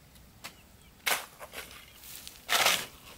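A shovel scrapes and scoops into loose cement powder.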